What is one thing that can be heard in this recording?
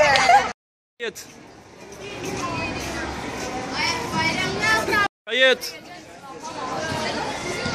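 Girls laugh and chatter nearby.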